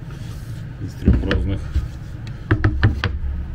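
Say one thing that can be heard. Metal strips clack down onto a wooden table.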